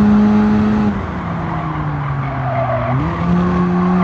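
A turbocharged four-cylinder sports car engine drops in pitch as the car brakes and downshifts.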